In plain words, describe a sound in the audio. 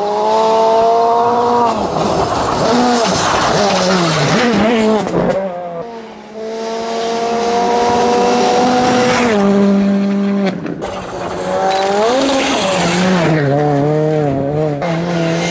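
A turbocharged four-cylinder rally car races by at full throttle.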